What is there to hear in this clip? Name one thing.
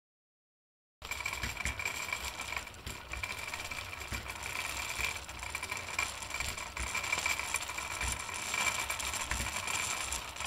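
A spinning wheel whirs steadily as its bobbin turns.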